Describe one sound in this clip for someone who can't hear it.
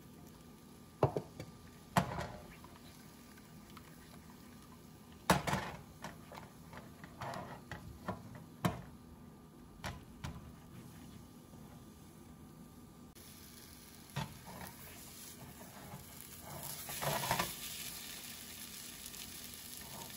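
A spatula scrapes and taps against a frying pan.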